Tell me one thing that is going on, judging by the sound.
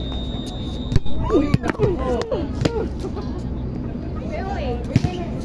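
A ball thuds on a hard court.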